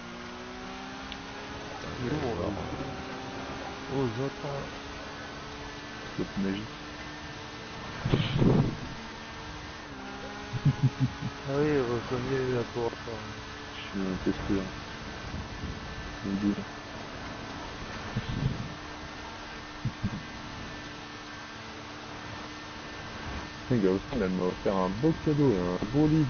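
A motorbike engine hums steadily as it rides along.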